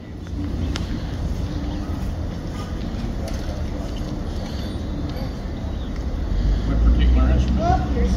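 An elderly woman talks casually nearby.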